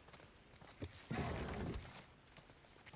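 A desk drawer slides open.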